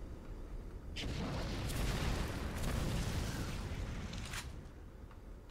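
Fire bursts out with a loud roaring whoosh.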